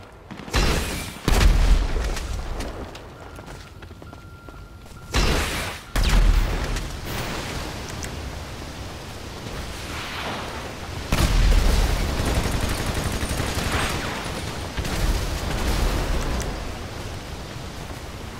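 A rifle fires bursts of gunshots.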